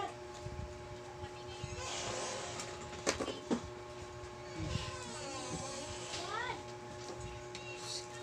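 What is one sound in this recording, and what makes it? Plastic crinkles as a young man handles a bag.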